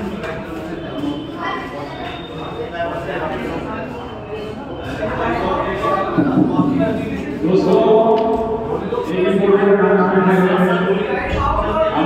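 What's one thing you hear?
A crowd of men chatter and call out nearby.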